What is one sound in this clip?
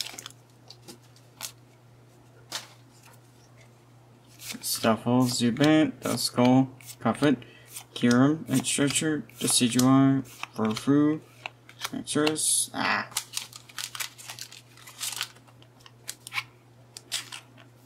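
Playing cards slide and tap against each other.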